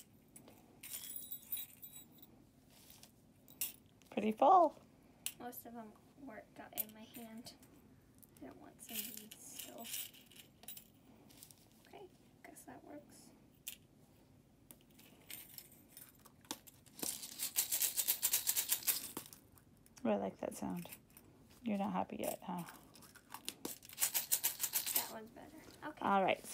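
A plastic capsule clicks and snaps as hands handle it.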